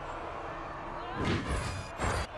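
A magical blast whooshes and strikes.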